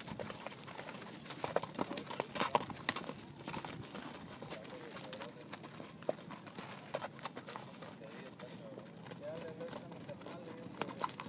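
Horses' hooves thud as they trot on packed dirt.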